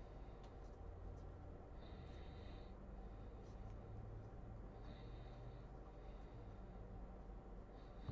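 Trading cards shuffle and flick between fingers.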